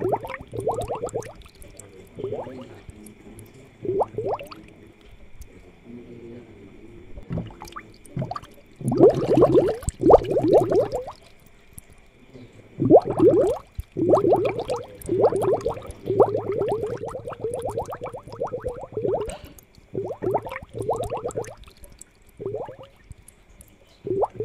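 Air bubbles gurgle and bubble in water.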